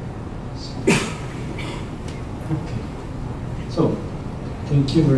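A man speaks into a microphone over loudspeakers in a large room.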